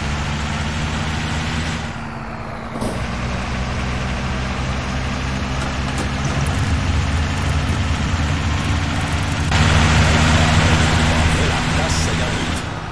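Tyres roll on the road with a constant rush.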